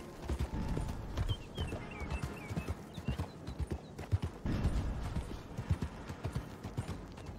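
A horse's hooves clop steadily on gravel.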